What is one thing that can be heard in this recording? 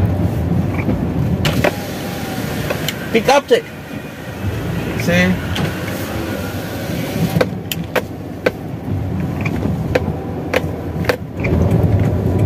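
Windscreen wipers sweep across the glass.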